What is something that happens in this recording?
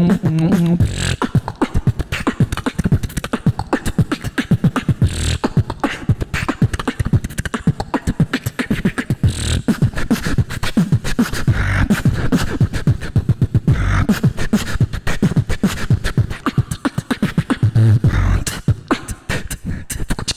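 A young man beatboxes fast, punchy drum sounds into a microphone through loudspeakers.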